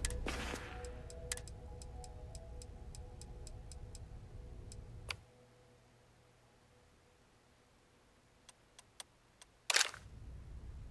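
Menu clicks tick softly.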